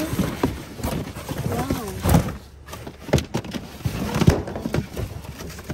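A plastic container knocks and rattles as it is lifted.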